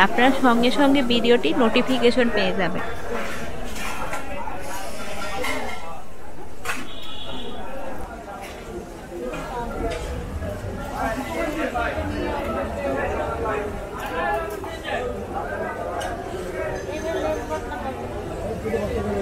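A blade chops and scrapes through fish, with sharp knocks.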